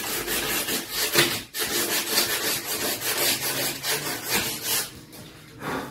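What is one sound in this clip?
Light knocks and scrapes come from work on a door frame.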